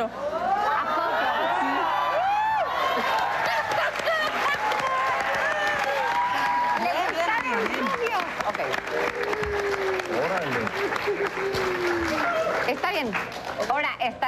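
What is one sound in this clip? An audience claps and applauds loudly.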